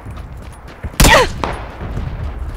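A gunshot cracks sharply with a long echo.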